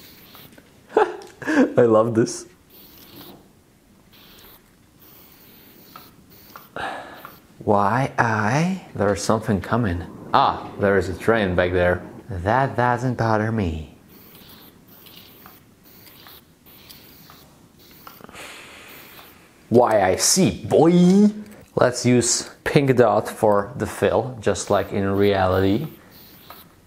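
A young man talks calmly into a close microphone, pausing between phrases.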